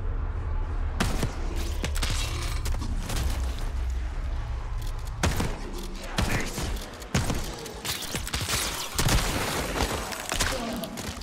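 Gunshots ring out in sharp bursts.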